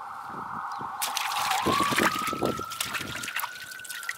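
Water splashes in a metal basin.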